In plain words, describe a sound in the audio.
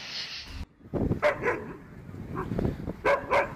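A dog barks loudly.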